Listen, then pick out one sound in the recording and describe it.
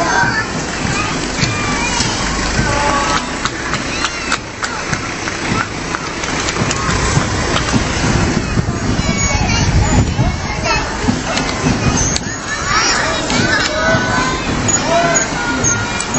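Fire truck engines rumble as they drive slowly past.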